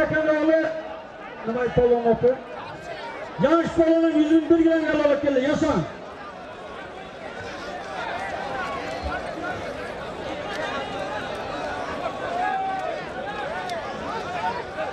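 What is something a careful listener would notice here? A large crowd chatters and shouts outdoors.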